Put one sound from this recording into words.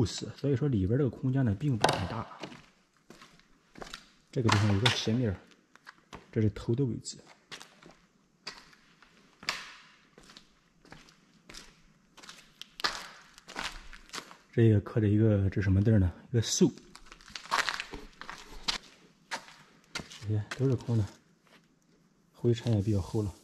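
A man speaks calmly and quietly, close to the microphone.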